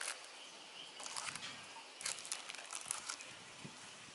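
Paper pages rustle as a booklet is turned over.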